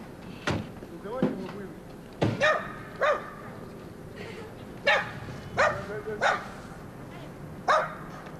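A man shouts loudly nearby in short bursts.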